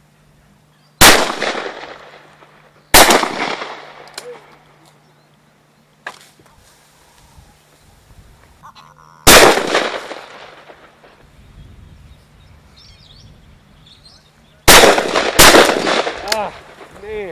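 Shotgun blasts ring out loudly outdoors, each followed by a rolling echo.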